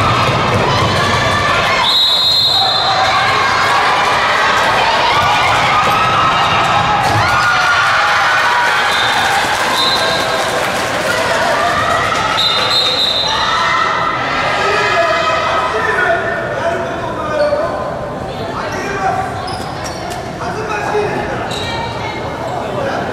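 A crowd of young spectators cheers and shouts in a large echoing hall.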